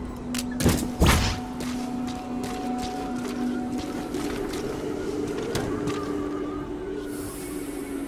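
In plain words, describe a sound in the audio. Footsteps crunch quickly on gravel.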